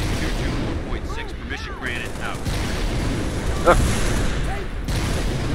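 Gunfire from a rifle rattles in rapid bursts.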